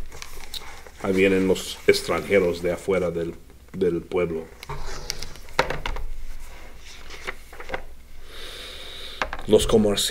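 A middle-aged man reads aloud calmly, close by.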